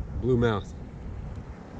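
A young man speaks briefly and close by.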